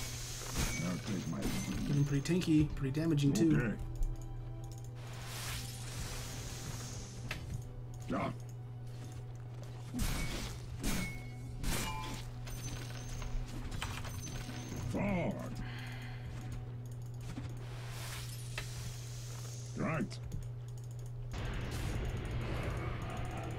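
Game spell effects and hits crackle and thud.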